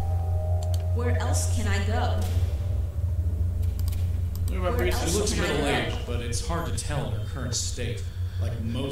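A young man talks casually, heard through a microphone.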